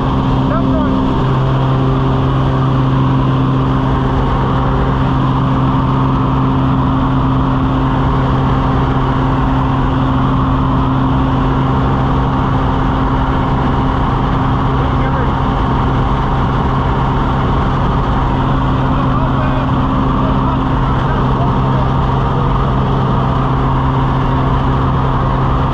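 Wind rushes loudly past the open cabin.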